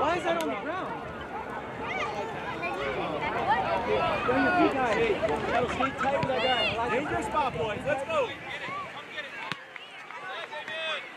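A crowd of young people chatters and calls out close by.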